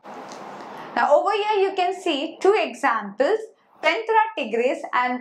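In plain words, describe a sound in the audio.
A young woman speaks clearly and calmly into a microphone.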